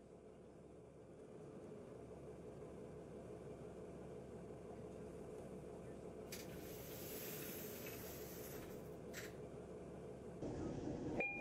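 A bus engine hums steadily at idle.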